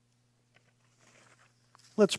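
Paper rustles as a page is turned.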